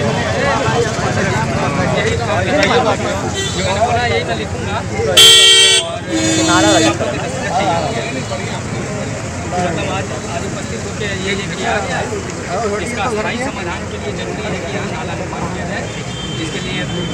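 A crowd of men talks over one another outdoors.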